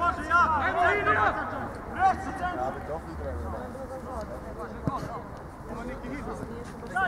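Men shout and call out loudly nearby, outdoors.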